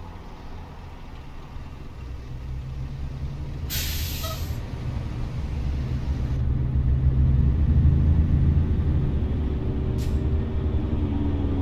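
A truck's diesel engine rumbles low and grows louder as it starts to pull away.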